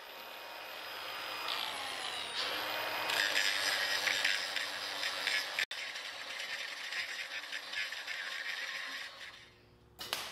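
An angle grinder whines and grinds against metal.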